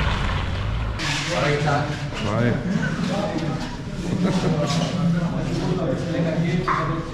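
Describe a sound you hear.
Young men's voices echo loudly in a long corridor.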